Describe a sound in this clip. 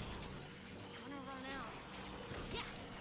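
An energy weapon fires with a crackling buzz.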